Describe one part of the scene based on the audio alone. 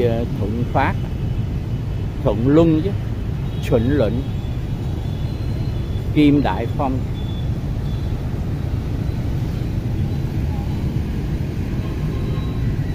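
Motorbikes and cars drive past on a busy street nearby.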